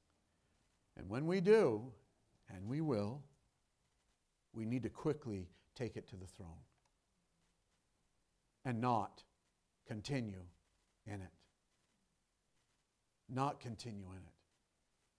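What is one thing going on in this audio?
An older man speaks with emphasis through a microphone, pausing between phrases.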